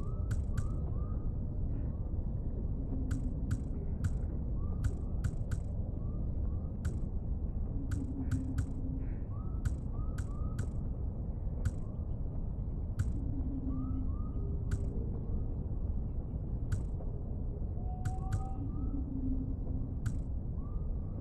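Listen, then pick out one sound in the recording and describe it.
Soft menu clicks tick again and again as selections change.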